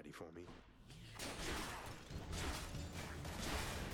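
Magic blasts and hits crackle in a fast video game fight.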